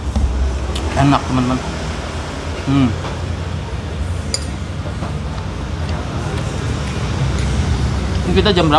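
A man murmurs with pleasure close to a microphone.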